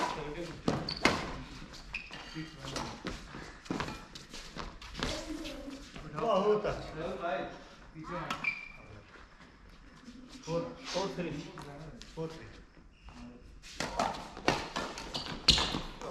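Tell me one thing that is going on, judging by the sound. Badminton rackets smack shuttlecocks in a large echoing hall.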